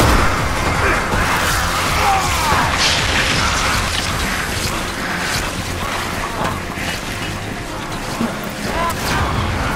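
A creature screeches and groans.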